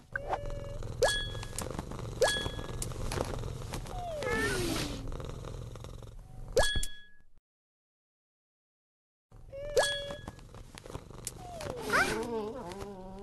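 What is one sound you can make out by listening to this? Short bright chimes ring out now and then.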